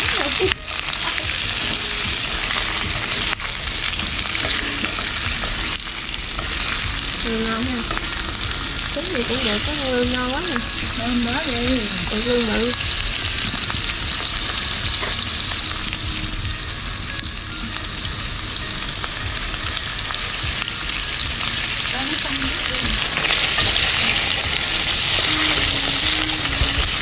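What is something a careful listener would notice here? Chopsticks scrape and tap against a metal pan.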